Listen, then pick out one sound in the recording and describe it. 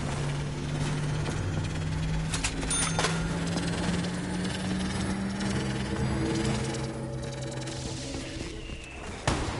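A vending machine plays a short jingle.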